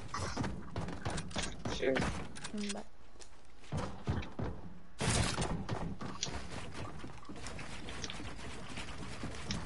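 Building pieces snap into place with quick clattering knocks.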